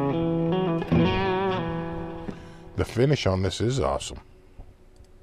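An electric guitar rings out with sustained, warbling notes.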